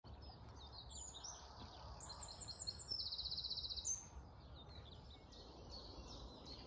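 A light wind blows outdoors.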